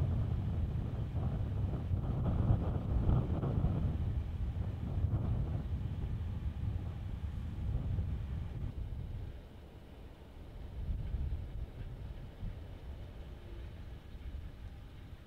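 Wind buffets loudly through an open car window.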